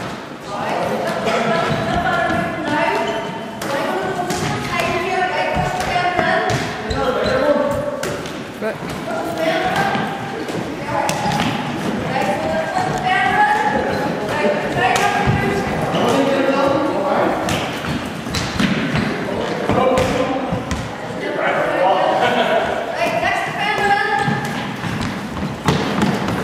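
Trainers squeak on a wooden floor.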